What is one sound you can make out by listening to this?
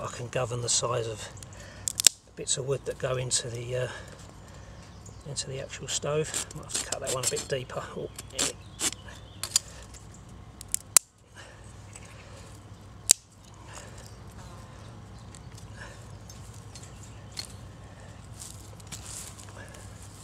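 A small wood fire crackles softly.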